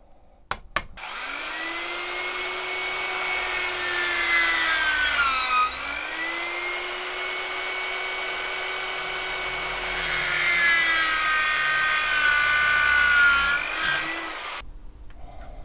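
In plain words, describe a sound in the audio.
An electric drill whirs steadily, dipping in pitch as it bites into wood.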